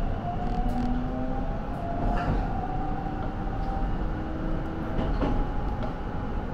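Train wheels squeal on a curve.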